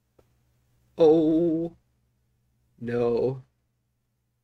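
A middle-aged man speaks briefly and close by.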